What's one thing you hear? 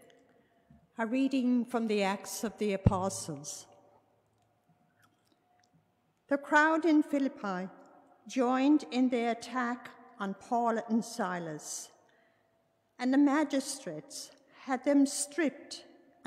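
An elderly woman reads aloud calmly through a microphone in a large echoing room.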